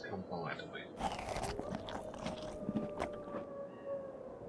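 A character chews and crunches food.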